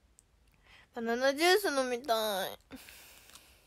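A young woman speaks brightly and closely into a microphone.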